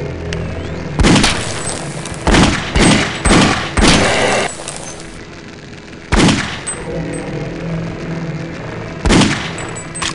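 Loud bursts of gunfire ring out several times.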